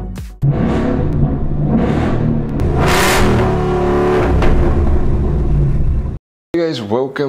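A car engine revs loudly through a rumbling exhaust.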